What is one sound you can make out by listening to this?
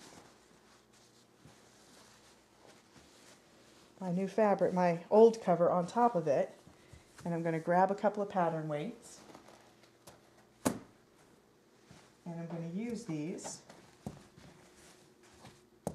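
Fabric rustles softly as it is smoothed and folded by hand.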